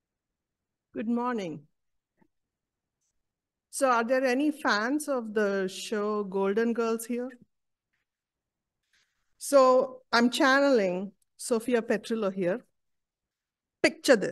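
A woman speaks calmly into a microphone, reading out.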